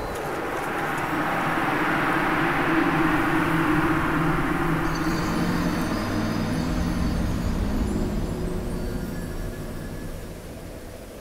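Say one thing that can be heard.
A creature dissolves with a loud rushing roar that slowly fades.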